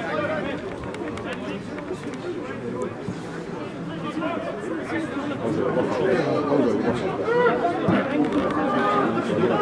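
Men shout and call to each other across an open outdoor field.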